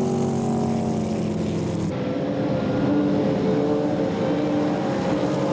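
A racing boat engine roars at high speed.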